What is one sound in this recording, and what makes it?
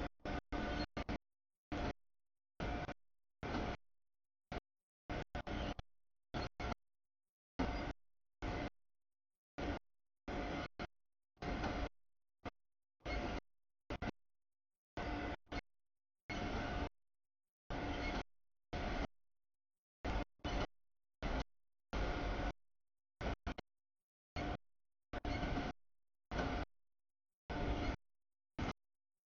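A freight train rumbles past close by, its wheels clattering over the rails in bursts.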